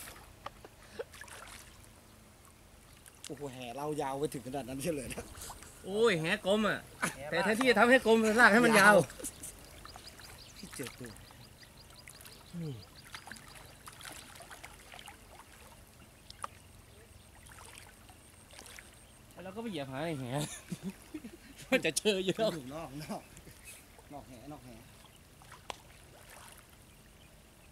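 Water sloshes as men wade through a stream.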